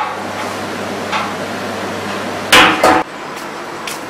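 A mallet thumps on a metal keg.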